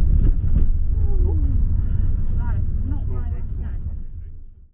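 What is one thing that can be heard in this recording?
A man talks close by inside a car.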